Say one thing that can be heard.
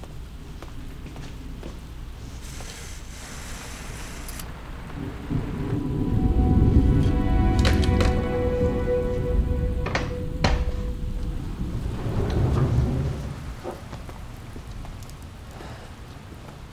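Rain patters steadily on a window.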